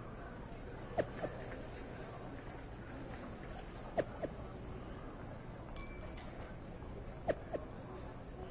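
Short notification chimes sound from a phone as new messages arrive.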